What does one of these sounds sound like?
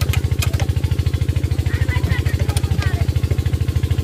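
A metal wrench clicks against an engine part.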